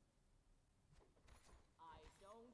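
A sword strikes with a thud.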